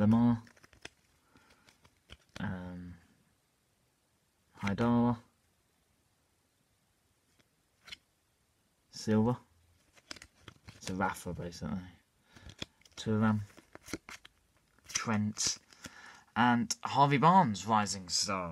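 Trading cards rustle and flick in hands.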